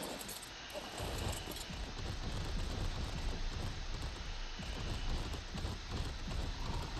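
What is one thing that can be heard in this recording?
Heavy footsteps thud steadily as a large creature runs.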